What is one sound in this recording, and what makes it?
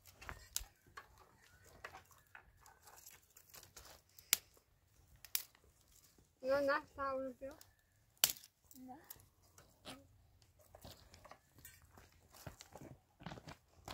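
Dry twigs rustle and snap.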